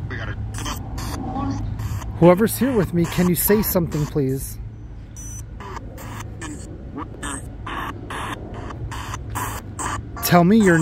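A handheld radio scanner sweeps rapidly through crackling bursts of static.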